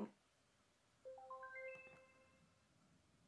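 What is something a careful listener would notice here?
A small speaker gives a quick rising series of beeps.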